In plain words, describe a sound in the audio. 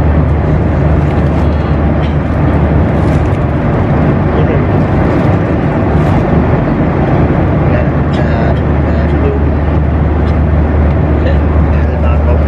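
Plastic wrapping crinkles as it is opened.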